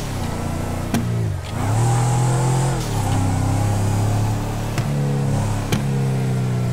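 An exhaust pops and crackles sharply.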